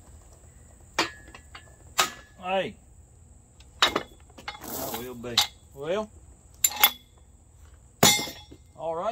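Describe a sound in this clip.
Metal clanks sharply with heavy blows.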